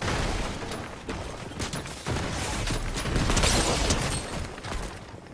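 Footsteps scuff on a tiled roof in a video game.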